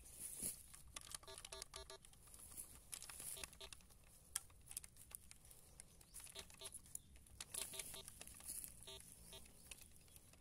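A metal detector gives short, repeated electronic beeps.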